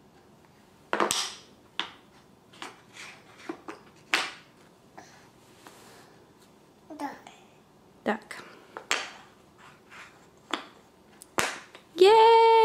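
Wooden puzzle pieces clatter and tap on a board.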